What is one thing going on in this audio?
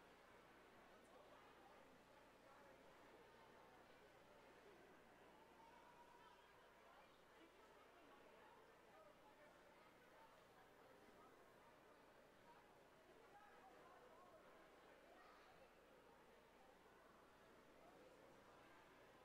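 A swimmer splashes through the water.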